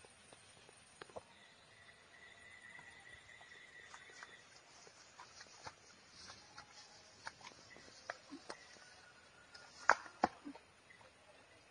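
A digging stick thuds and scrapes in soil and grass.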